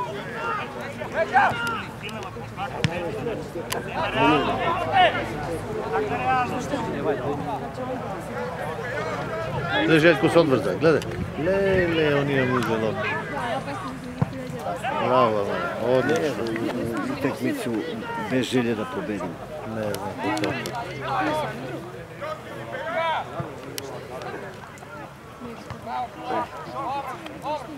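Men talk and call out with animation outdoors, some close by and some far off across a playing field.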